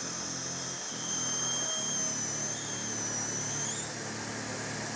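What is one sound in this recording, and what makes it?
A dental drill whines briefly at a high pitch.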